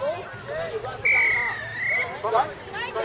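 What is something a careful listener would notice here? A referee's whistle blows once, briefly.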